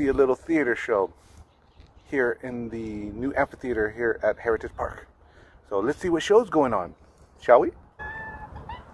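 A middle-aged man talks calmly and close to the microphone, outdoors.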